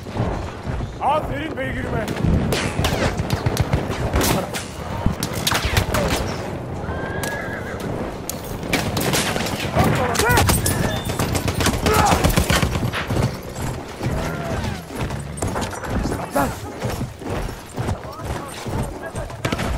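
Horse hooves pound rapidly on the ground.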